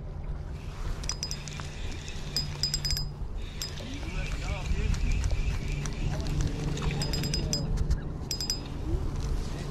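A fishing reel clicks and whirs as its line is wound in.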